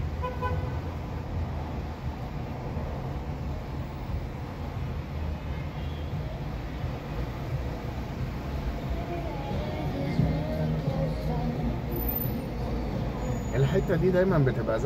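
A car engine hums steadily inside a car moving slowly through traffic.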